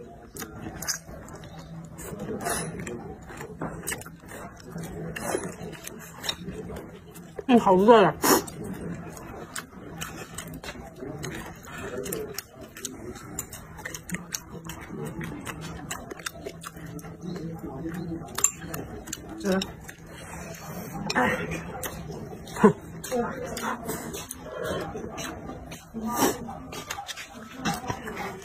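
A young woman slurps noodles loudly, close by.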